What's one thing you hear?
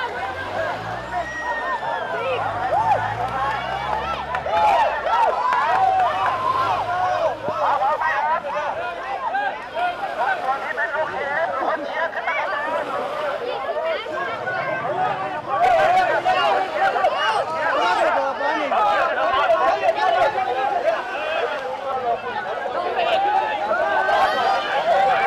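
A large crowd of men and women shouts and chatters excitedly outdoors.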